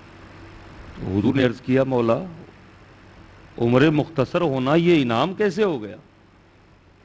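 A man speaks through a microphone in a slow, chanting voice, with pauses.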